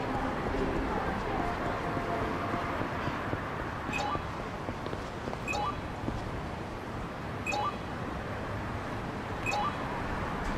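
A busy city street hums with a steady bustle.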